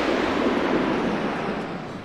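A small boat splashes onto water.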